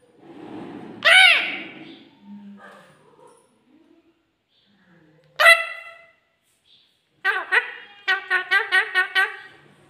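A parakeet squawks loudly and screeches in short bursts close by.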